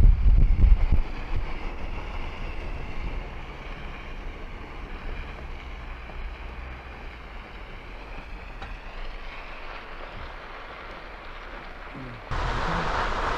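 Tyres crunch on a gravel road.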